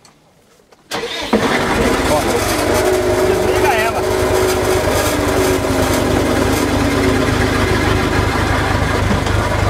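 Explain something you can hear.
A tractor engine starts up and runs with a loud, steady drone close by.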